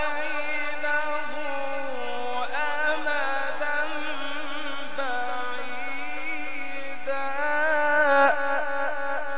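A man chants in a long, drawn-out voice through a microphone and loudspeakers.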